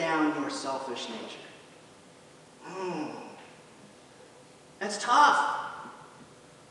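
A man speaks with animation into a microphone in a large echoing hall.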